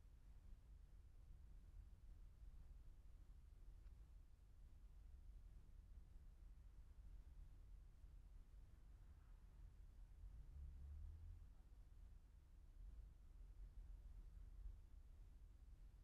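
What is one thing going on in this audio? A car drives slowly past nearby.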